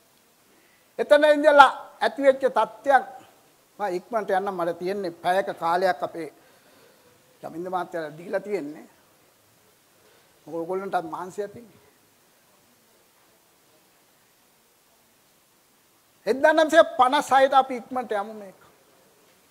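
An elderly man speaks with animation through a microphone, in bursts with pauses.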